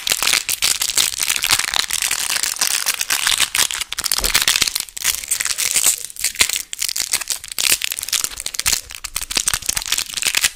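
Plastic wrapper crinkles and rustles close to a microphone.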